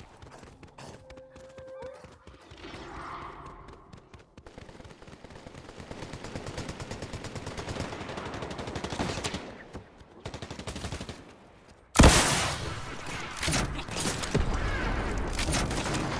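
Footsteps patter quickly as a game character runs.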